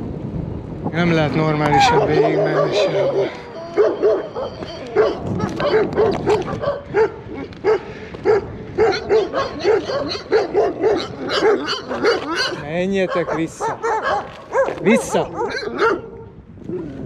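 Dogs bark repeatedly nearby.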